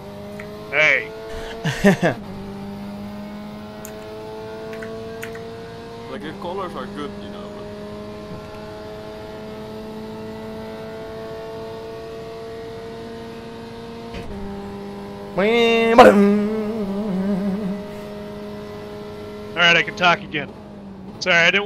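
A racing car engine drones steadily, its pitch rising and falling with the gears.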